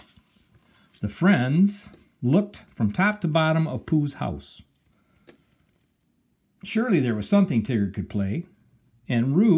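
A man reads aloud close by, in a lively storytelling voice.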